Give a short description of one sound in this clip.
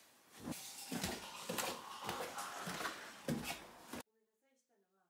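Footsteps thud on wooden stairs, going down at a steady pace.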